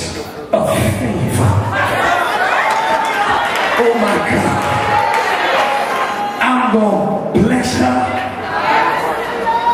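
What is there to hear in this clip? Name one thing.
A man sings with strong feeling through a microphone and loudspeakers in a large hall.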